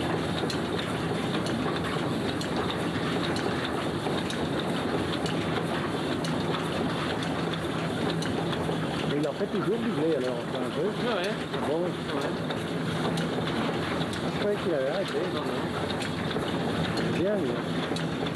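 Belt-driven wooden mill machinery rattles and rumbles.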